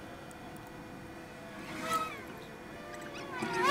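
Plastic parts creak as they are pried apart.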